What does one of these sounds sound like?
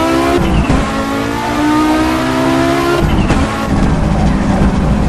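A turbocharged five-cylinder rally car engine revs hard at full throttle.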